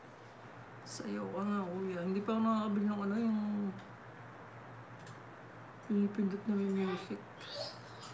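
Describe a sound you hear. A man sings long held notes.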